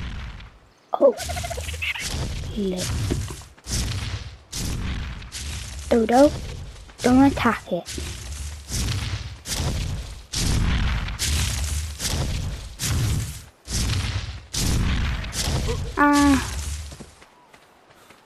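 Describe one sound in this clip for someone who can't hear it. Footsteps thud quickly through grass and sand.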